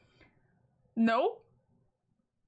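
A young woman gives a short, high exclamation into a microphone.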